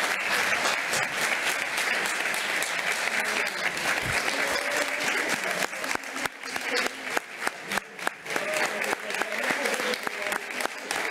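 A crowd cheers and shouts with excitement.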